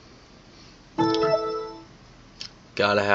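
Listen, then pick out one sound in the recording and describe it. A computer plays a short, bright startup chime.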